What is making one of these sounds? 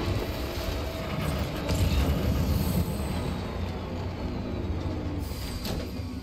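Tyres crunch over rock.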